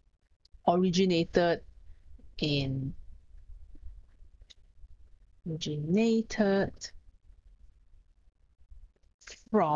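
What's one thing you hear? A woman speaks calmly and clearly into a close microphone, in short phrases.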